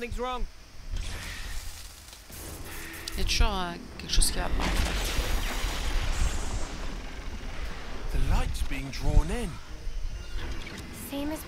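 A deep energy surge rumbles and crackles.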